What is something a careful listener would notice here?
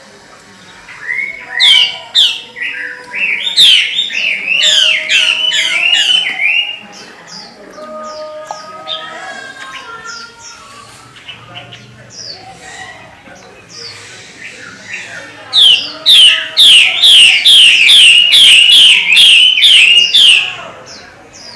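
A caged songbird sings loud, rapid whistling phrases close by.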